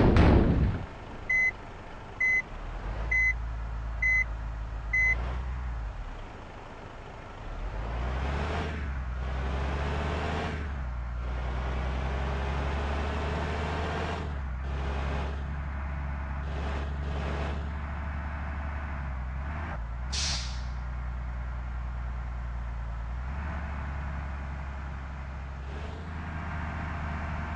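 A bus engine idles and then revs up as the bus speeds along.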